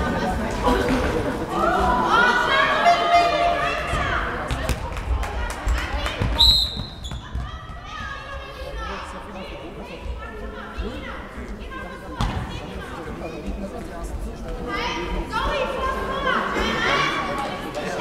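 A ball thuds as it is kicked.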